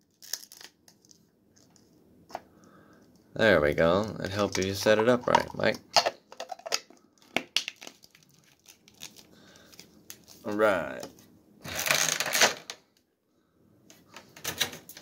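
Plastic toy parts click and rattle as they are handled up close.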